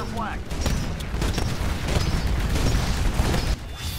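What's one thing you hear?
Explosions burst nearby.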